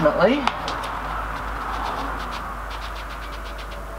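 A sponge scrapes and rubs over a wet, gritty mix.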